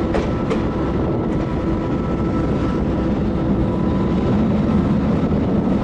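A locomotive rumbles along the track, heard from the cab.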